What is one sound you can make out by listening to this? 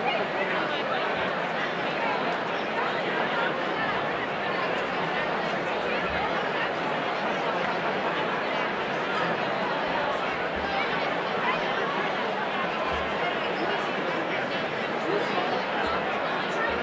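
A large crowd of men and women chatters loudly in a big echoing hall.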